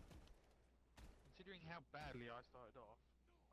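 Gunfire rings out in quick bursts.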